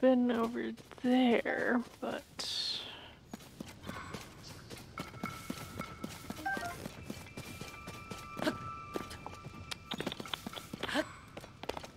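Footsteps swish and pad through grass.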